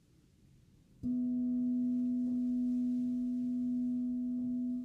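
A crystal singing bowl is struck and rings with a steady, humming tone.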